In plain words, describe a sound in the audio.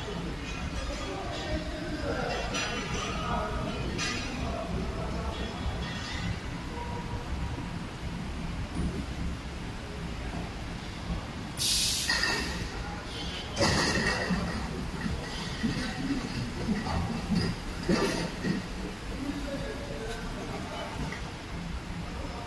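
Factory machinery hums steadily in a large echoing hall.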